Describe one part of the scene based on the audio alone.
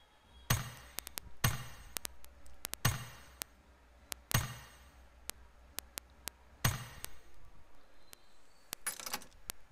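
Game menu buttons click sharply.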